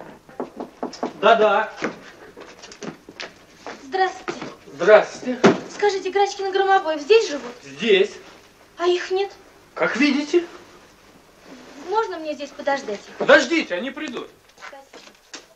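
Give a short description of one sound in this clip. A young man speaks with agitation nearby.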